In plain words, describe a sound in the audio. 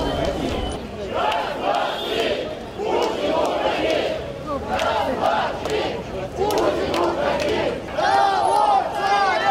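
A large crowd chants loudly in unison outdoors.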